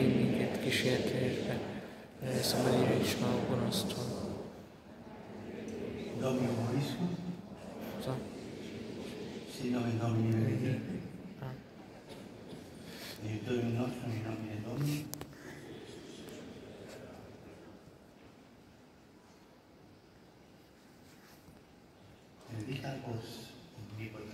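An elderly man speaks slowly through loudspeakers in a large echoing hall.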